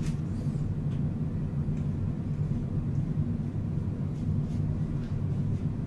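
A makeup puff pats softly against a woman's face.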